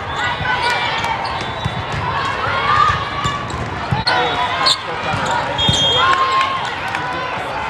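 Young women shout and call to each other in a large echoing hall.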